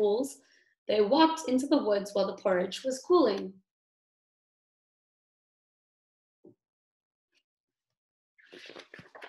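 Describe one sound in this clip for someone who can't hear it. A young woman reads aloud close by, in an expressive voice.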